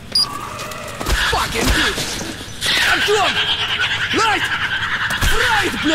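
A creature shrieks and screeches repeatedly.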